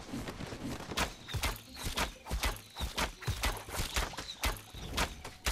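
A blade swishes and slices through tall grass again and again.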